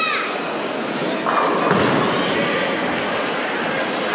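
A bowling ball rolls down a lane.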